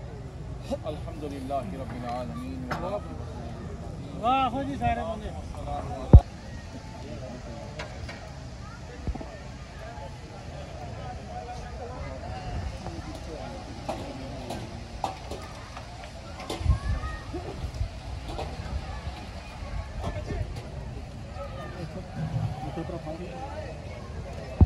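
A crowd of men chatter all around outdoors.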